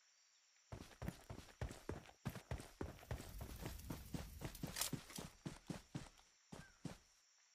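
Footsteps rush quickly through grass.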